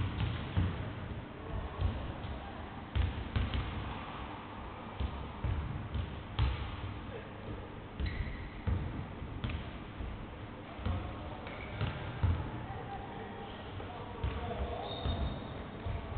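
Basketballs bounce on a wooden floor, echoing in a large hall.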